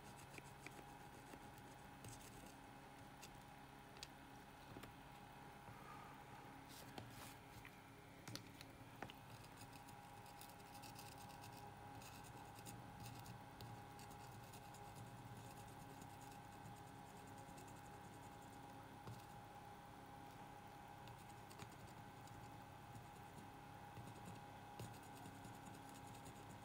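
A soldering iron tip taps and scrapes softly on a circuit board.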